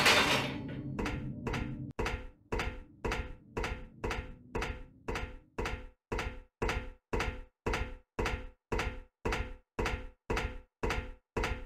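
Footsteps clank steadily on a metal walkway.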